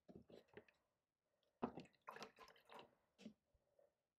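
A paintbrush swishes and clinks in a jar of water.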